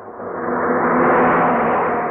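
A car engine hums as the car drives along a road.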